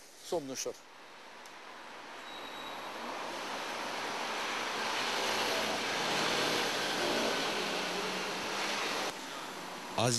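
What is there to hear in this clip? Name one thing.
A car drives past and fades.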